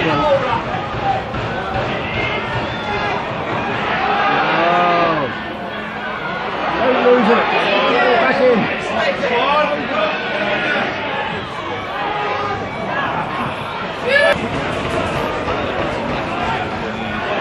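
Men close by talk and call out loudly.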